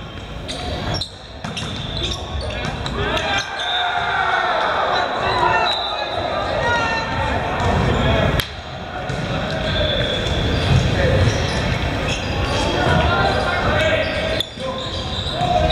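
Young men call out and talk in a large echoing hall.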